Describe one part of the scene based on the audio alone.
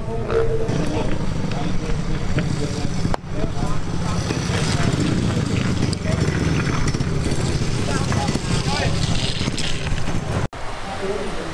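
Speedway motorcycle engines rumble and rev close by.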